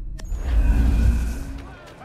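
Swords clash in a fight.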